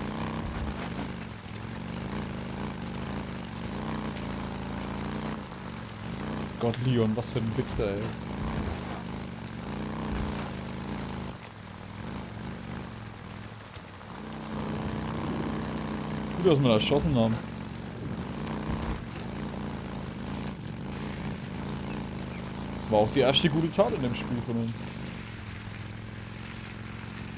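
A motorbike engine hums and revs unevenly.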